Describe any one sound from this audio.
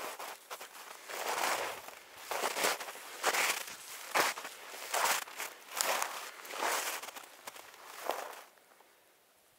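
Wind gusts roar across open ground outdoors.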